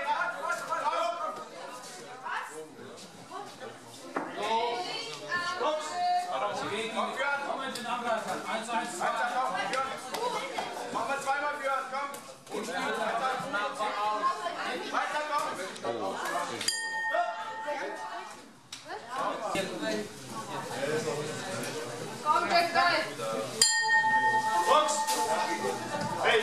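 A man talks loudly and with animation close by, in an echoing hall.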